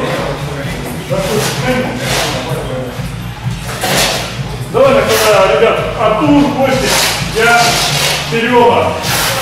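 A man talks with animation, close by, in a large echoing hall.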